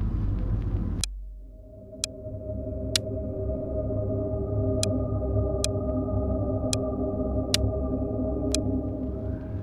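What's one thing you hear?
Short, sharp menu clicks tick several times.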